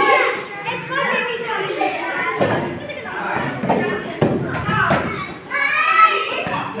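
Young children chatter and shout excitedly close by.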